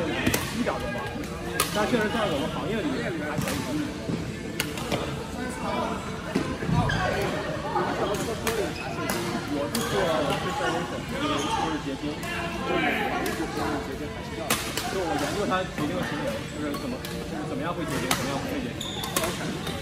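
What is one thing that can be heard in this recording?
Men talk and call out across the hall.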